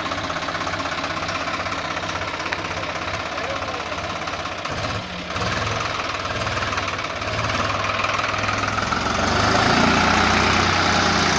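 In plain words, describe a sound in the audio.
A tractor's diesel engine chugs steadily close by and grows louder.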